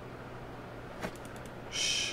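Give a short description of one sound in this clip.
A menu click sounds once.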